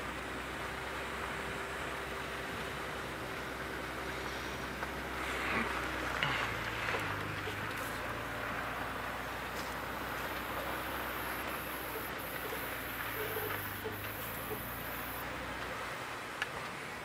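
A vehicle engine idles and rumbles low and steady.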